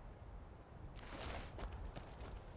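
Magic energy crackles and hisses softly.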